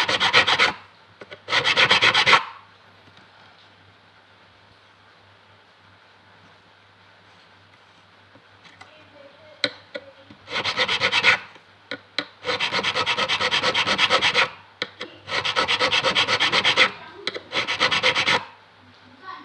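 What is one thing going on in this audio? A metal file rasps in quick, rhythmic strokes against a guitar fret.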